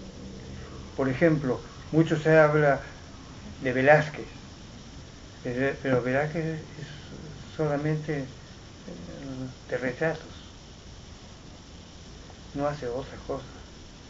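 A middle-aged man speaks calmly in short phrases with pauses, close by.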